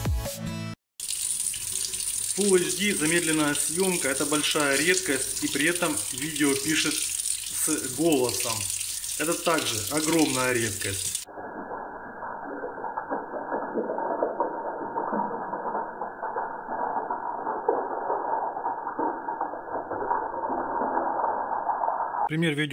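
Water runs from a tap and splashes over hands.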